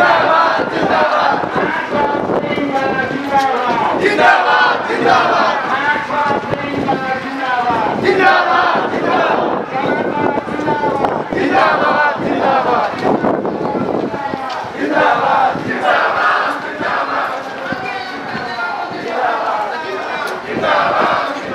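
A crowd of marchers chants slogans loudly in unison outdoors.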